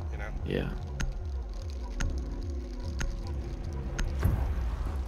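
A game countdown ticks once a second.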